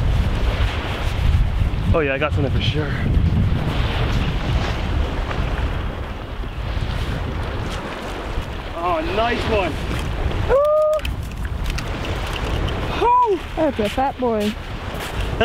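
Wind blows steadily across the microphone outdoors.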